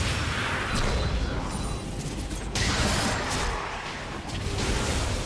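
Video game battle sound effects clash and burst.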